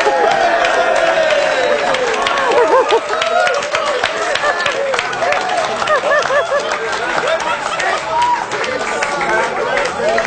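A woman laughs helplessly.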